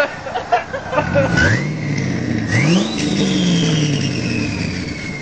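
A twin-turbo V8 pickup revs hard.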